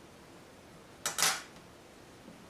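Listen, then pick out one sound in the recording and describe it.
Metal tweezers click sharply against a small watch part.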